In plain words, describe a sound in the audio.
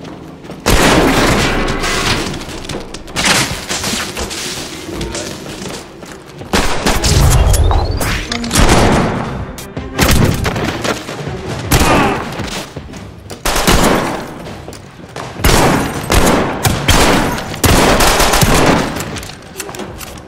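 A shotgun fires with loud booming blasts.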